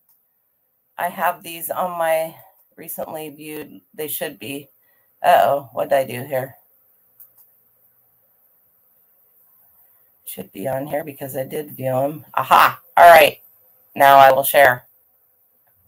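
A middle-aged woman talks calmly into a microphone over an online call, in short bursts with pauses.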